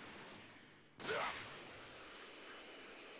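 A burst of energy explodes with a loud whoosh.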